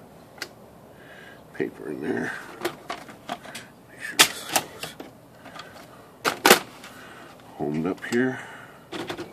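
A typewriter's mechanism clicks and clatters.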